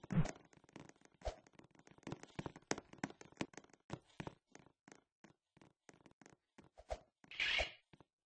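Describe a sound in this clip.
Footsteps thump on wooden stairs.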